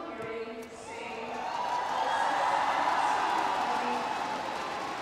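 A crowd cheers and applauds loudly.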